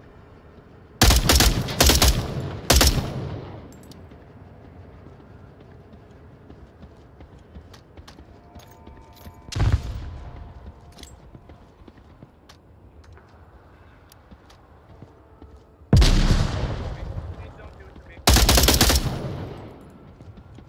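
A rifle fires loud shots that echo outdoors.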